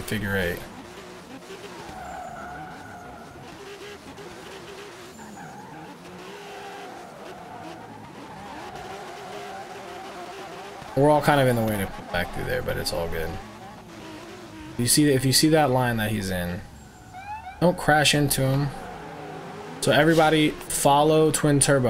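A car engine hums and revs up and down loudly.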